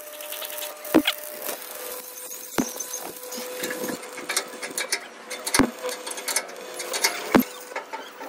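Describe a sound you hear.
Metal clanks sharply against metal.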